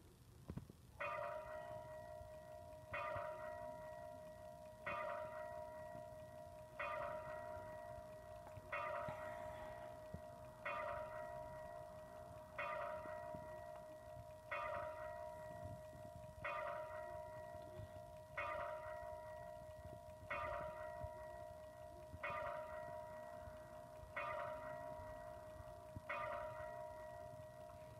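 A bright electronic chime from a computer game rings out about every two seconds, each one slowly fading.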